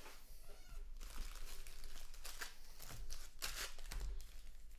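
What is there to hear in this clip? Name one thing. Trading cards rustle and slap as hands shuffle through a stack.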